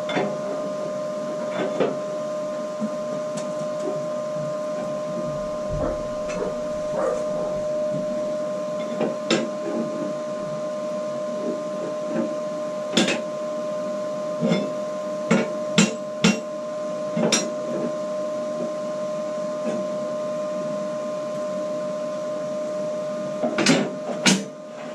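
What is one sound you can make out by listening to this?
Sheet metal clanks and knocks.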